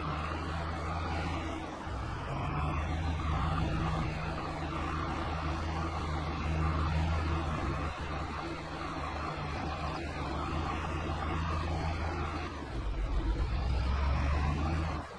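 A tractor engine rumbles steadily as it drives along.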